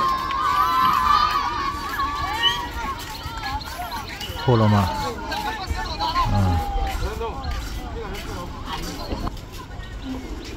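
Young boys shout and call out across an open field outdoors.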